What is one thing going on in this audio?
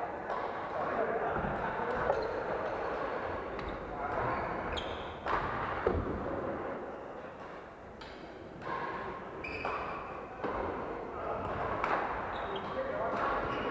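Shuttlecocks are hit with rackets in quick, sharp taps.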